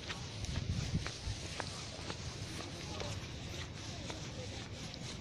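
Stiff leaves rustle and scrape close by as they brush past.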